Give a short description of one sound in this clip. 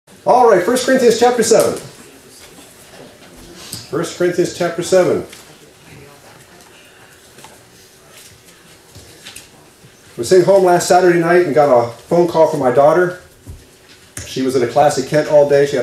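A middle-aged man speaks calmly into a microphone in a large room, with pauses between phrases.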